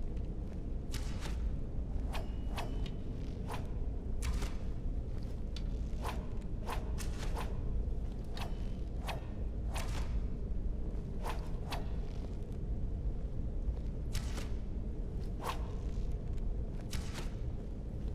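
Blades strike wooden training dummies with sharp, repeated knocks.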